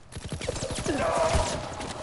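Gunshots crack nearby.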